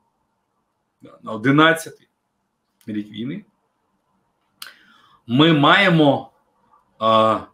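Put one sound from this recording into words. An older man speaks calmly over an online call, in short bursts with pauses.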